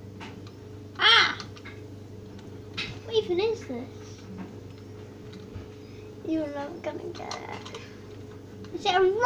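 A small child squeals and laughs.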